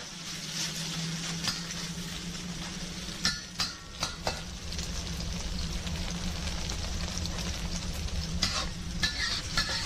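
Meat sizzles loudly in a hot pan.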